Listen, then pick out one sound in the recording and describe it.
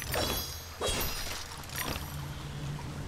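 Blades slash and strike with sharp hits.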